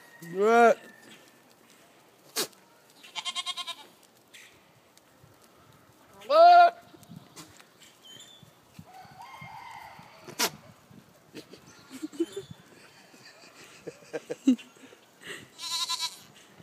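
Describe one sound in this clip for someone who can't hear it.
A goat bleats loudly and close by, several times.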